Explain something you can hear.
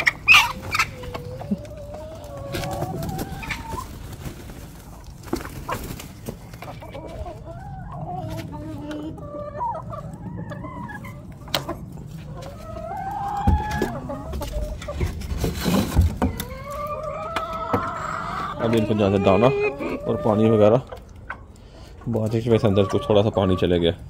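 Chickens cluck and squawk nearby.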